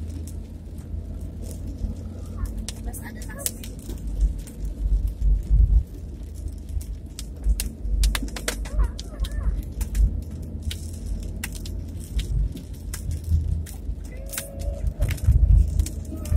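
Wind buffets and rumbles against the microphone.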